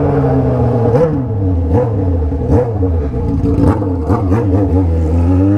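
The straight-pipe exhaust of a sport motorcycle crackles and pops.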